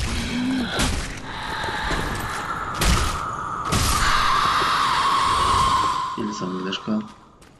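A giant wolf lets out a long, loud howl.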